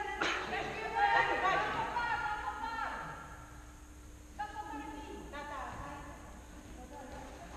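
Men shout across a large echoing hall.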